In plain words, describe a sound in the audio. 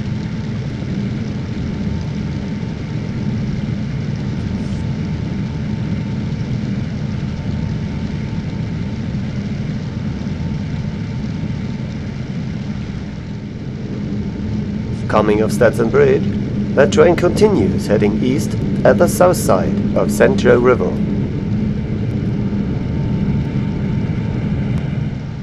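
Train wheels clatter along the rails.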